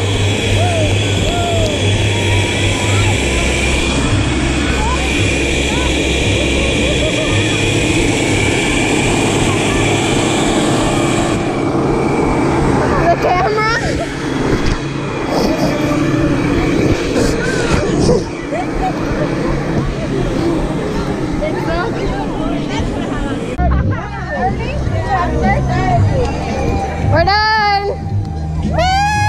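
A lively crowd of young people shouts and cheers outdoors.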